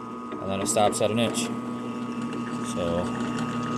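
A drill bit grinds into metal.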